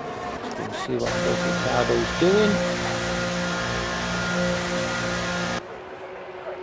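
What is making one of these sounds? A racing car engine drones steadily at low speed.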